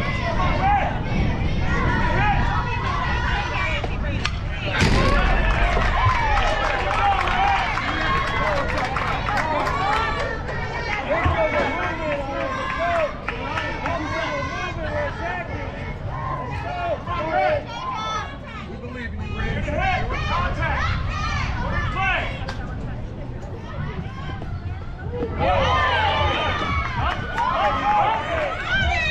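Young girls shout and cheer outdoors.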